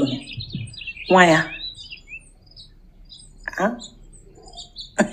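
A woman speaks with animation close to a phone microphone.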